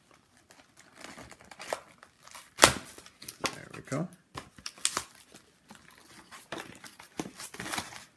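Cardboard scrapes and rustles as a box is opened.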